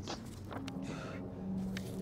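A paper map rustles.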